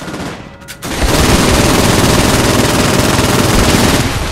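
A weapon fires a loud, steady rushing blast.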